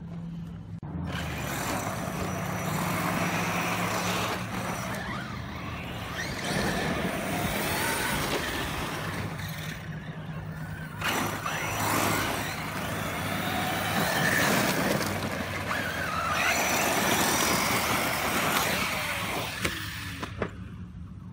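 Small electric motors whine as toy cars race over dirt.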